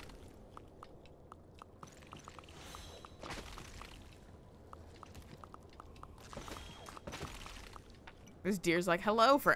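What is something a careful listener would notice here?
Small footsteps tap quickly and evenly.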